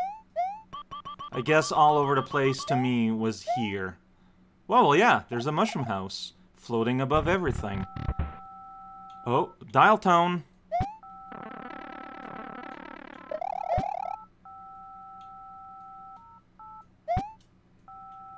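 A short rising video game jump sound chirps a few times.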